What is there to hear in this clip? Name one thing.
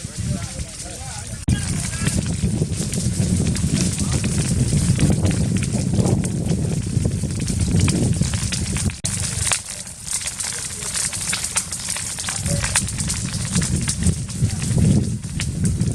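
A wildfire roars steadily.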